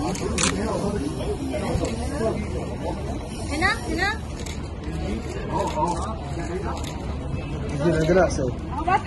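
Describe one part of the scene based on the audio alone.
A crowd of men and women chatter and call out nearby.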